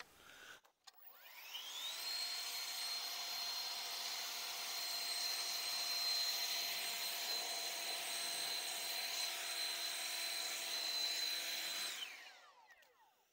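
A cordless battery leaf blower whirs, blowing grit off a plastic mat.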